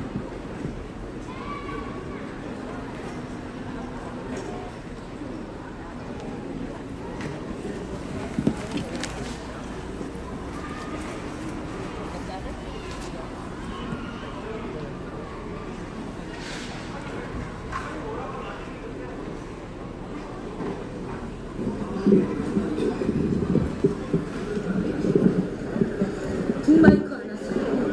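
A group of women sings together outdoors through loudspeakers.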